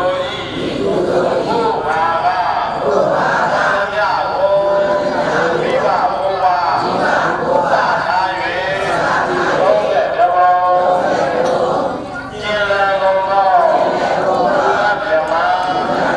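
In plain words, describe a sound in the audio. A crowd of men and women chant together in unison.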